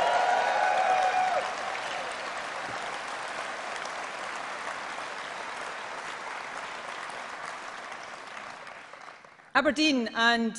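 A large crowd applauds and cheers in a big hall, then fades.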